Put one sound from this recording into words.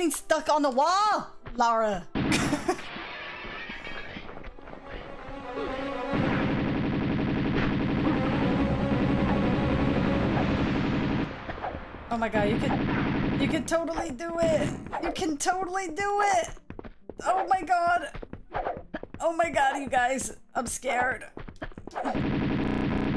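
A young woman talks and laughs with animation into a close microphone.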